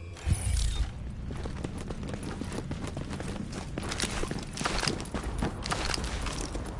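Footsteps crunch over debris.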